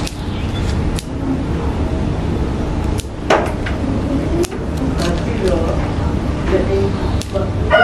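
Small scissors snip through thin twigs with sharp clicks.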